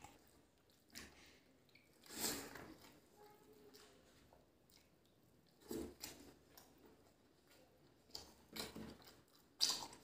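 A man chews food close to a microphone with wet, smacking mouth sounds.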